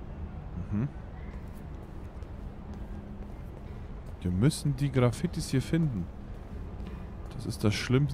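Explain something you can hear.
Footsteps tap on a hard tiled floor.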